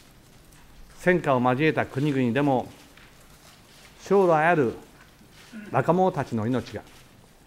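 A middle-aged man speaks slowly and solemnly into a microphone, with long pauses.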